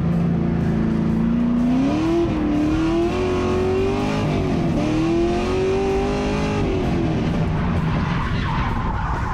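A car engine roars loudly, its pitch rising and dipping as it revs.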